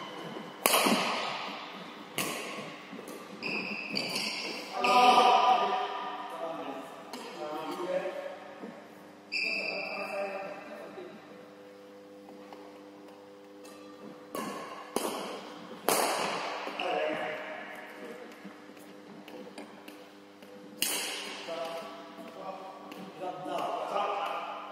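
Badminton rackets smack a shuttlecock sharply in an echoing hall.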